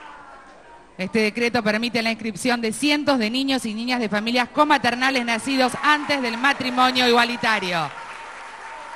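A woman speaks with animation close up.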